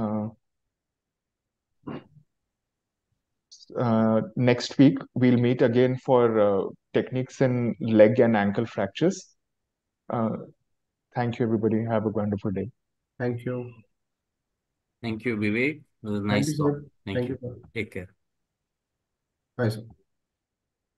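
A man speaks calmly through an online call, with short pauses.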